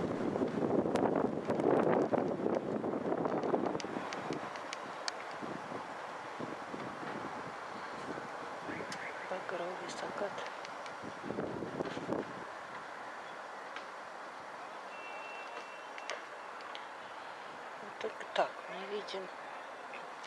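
Wind rustles through tree leaves outdoors.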